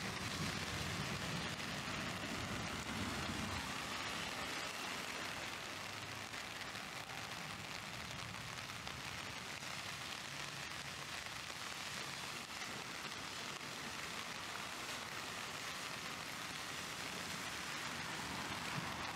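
Rain falls steadily outdoors with a constant hiss.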